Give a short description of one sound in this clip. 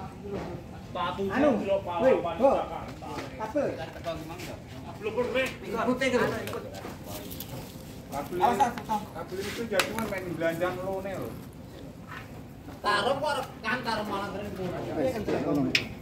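Men talk nearby outdoors, casually and with animation.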